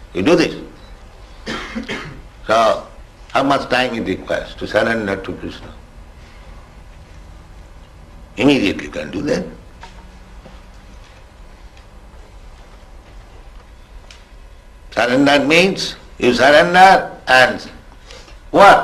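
An elderly man speaks slowly and calmly into a microphone, pausing between phrases.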